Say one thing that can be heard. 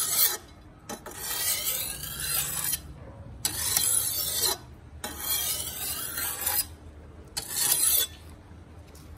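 A steel machete blade scrapes against a metal vise.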